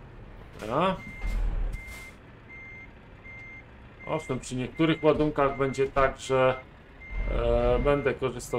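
A reversing alarm beeps at an even pace.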